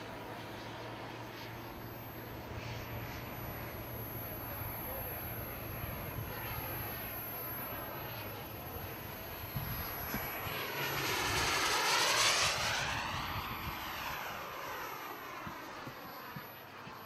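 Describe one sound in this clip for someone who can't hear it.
A jet engine roars overhead, growing louder as the plane passes and then fading away.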